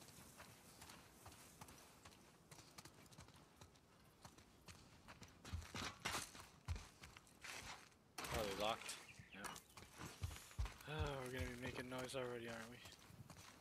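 Footsteps scuff on hard ground.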